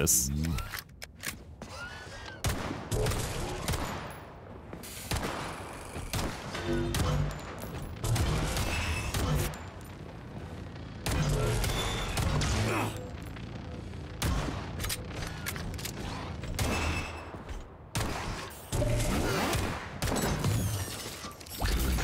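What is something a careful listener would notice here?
A pistol fires in sharp repeated shots that echo down a hard corridor.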